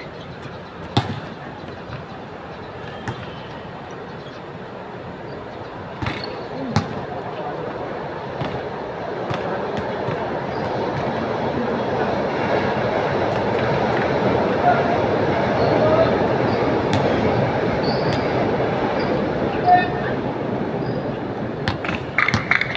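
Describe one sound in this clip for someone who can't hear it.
A basketball bounces on an outdoor court with sharp thuds.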